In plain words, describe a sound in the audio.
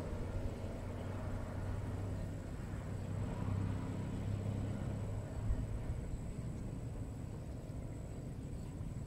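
Water laps softly against a boat's hull.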